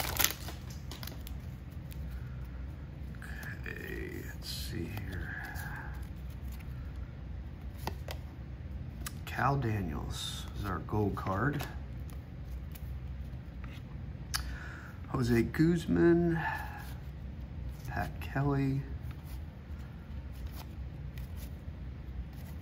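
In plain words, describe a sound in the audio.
Cardboard trading cards slide and flick against each other in the hands.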